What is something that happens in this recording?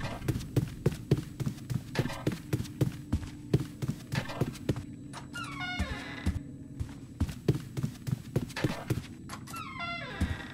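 Quick footsteps thud steadily on a hard floor.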